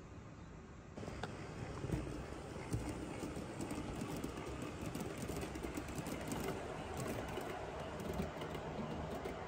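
A model train rumbles and clicks along its track close by.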